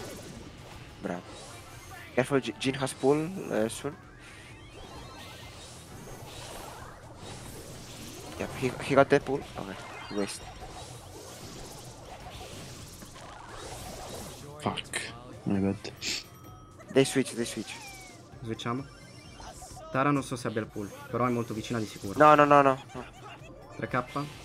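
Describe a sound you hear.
A young man talks with animation close to a microphone, in bursts.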